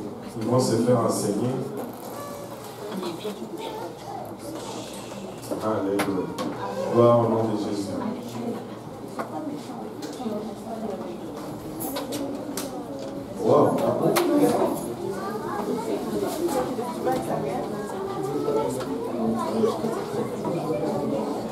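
A man speaks with animation through a microphone in a large echoing room.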